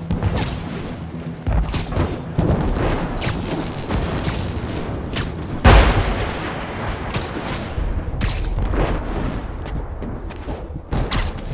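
Wind rushes past steadily during fast swinging.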